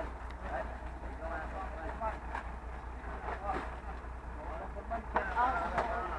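Plastic sacks rustle as they are handled.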